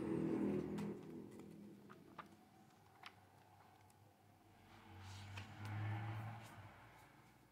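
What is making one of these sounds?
Glossy paper pages rustle and flip by hand.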